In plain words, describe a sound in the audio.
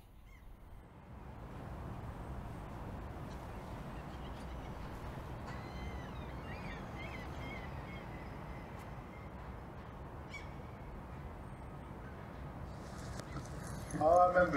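Water laps gently at the shore.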